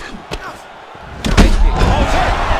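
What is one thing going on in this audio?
A kick lands on a body with a heavy thud.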